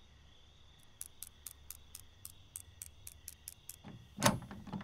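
A lock's pin clicks rapidly as it is picked.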